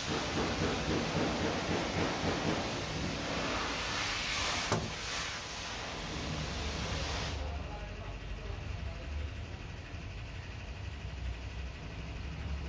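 Fabric rustles and scrapes close by as it is pressed and tucked into place.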